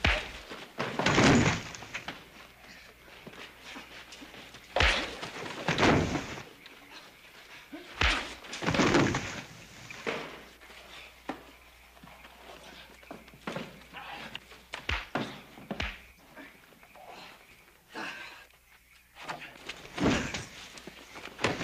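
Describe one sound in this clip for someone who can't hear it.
A man grunts and groans.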